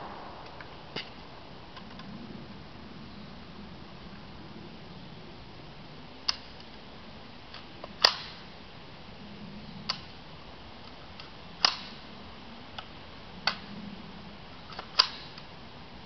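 A 9mm carbine fires single shots outdoors.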